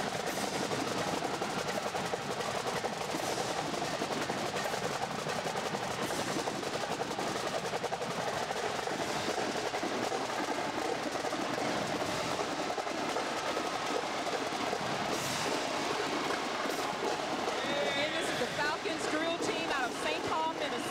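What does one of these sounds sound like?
Snare drums beat a fast, steady marching rhythm in a large echoing hall.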